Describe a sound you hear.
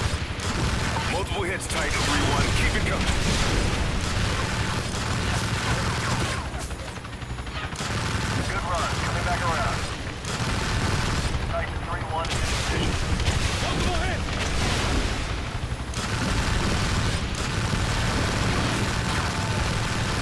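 Explosions boom on the water.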